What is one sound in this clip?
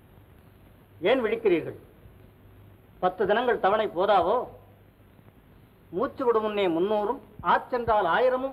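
A man speaks forcefully, close by, with a slightly hollow old-film sound.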